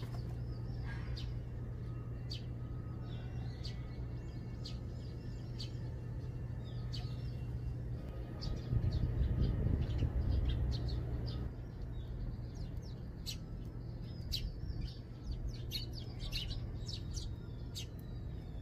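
Small birds chirp and tweet nearby outdoors.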